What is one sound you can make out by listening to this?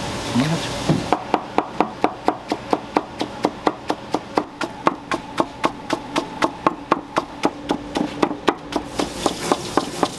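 A knife taps rapidly on a wooden cutting board, chopping.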